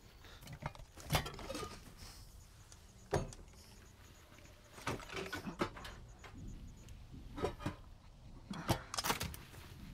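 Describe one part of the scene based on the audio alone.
Metal parts clank and knock on a truck engine.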